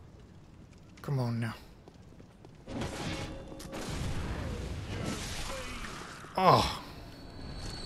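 A man talks into a nearby microphone.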